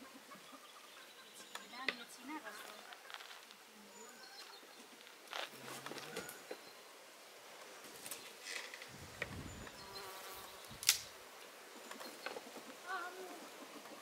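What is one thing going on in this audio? A man digs into soil with a pick, with dull knocks.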